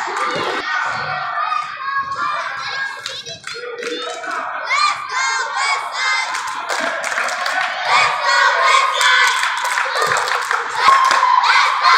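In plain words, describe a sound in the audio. Spectators chatter and call out in a large echoing hall.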